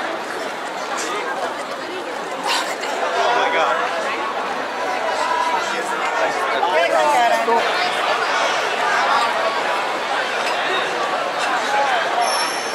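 A busy crowd chatters and calls out all around outdoors.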